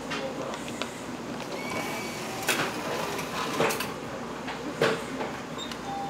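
Buttons on a ticket machine click as they are pressed.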